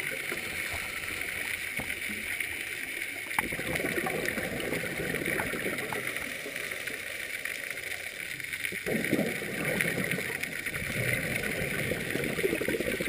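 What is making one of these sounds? Scuba breathing bubbles gurgle and rumble loudly underwater.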